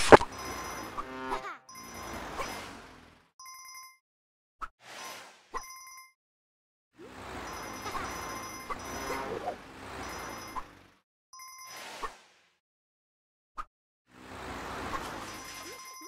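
Game coins chime brightly as they are collected.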